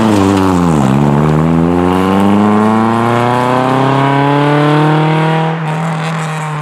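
A rally car engine roars loudly, its revs climbing as the car speeds away.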